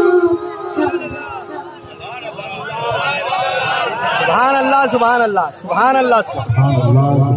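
A boy chants loudly into a microphone, amplified over loudspeakers.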